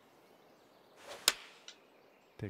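A golf club strikes a ball with a sharp whoosh and thwack.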